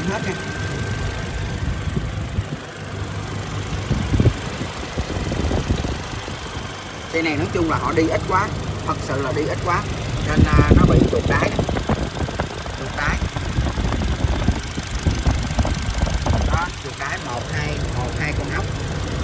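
An engine idles with a low, steady rumble.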